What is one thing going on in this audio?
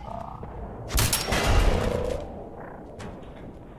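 An explosion bursts with a loud blast.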